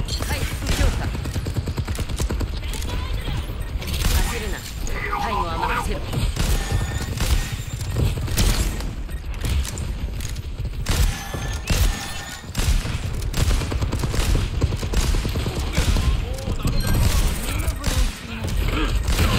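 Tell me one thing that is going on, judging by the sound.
Gunfire bursts rapidly throughout.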